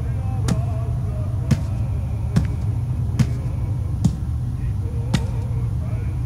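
Footsteps tap slowly on a hard floor.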